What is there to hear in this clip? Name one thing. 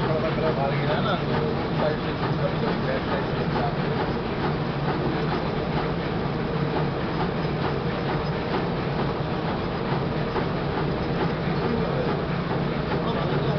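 Metal parts click and clatter rapidly.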